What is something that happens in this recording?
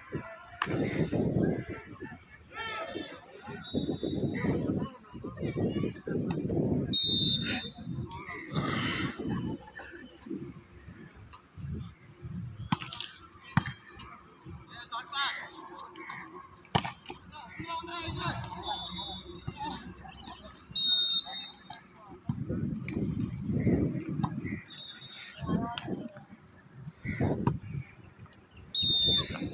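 Young men shout and call out outdoors during a ball game.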